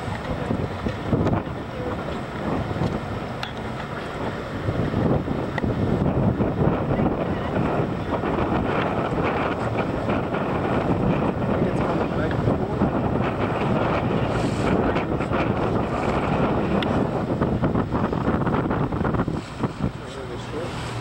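Strong wind buffets loudly outdoors.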